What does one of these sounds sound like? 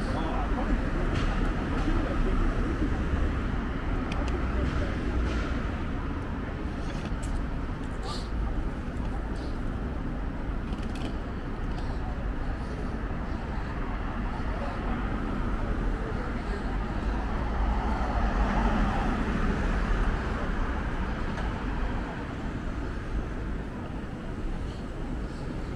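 City traffic rumbles steadily outdoors.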